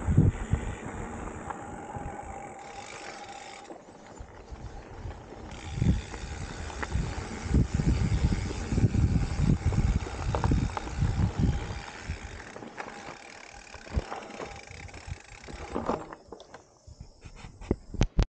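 Wind rushes past the rider's microphone.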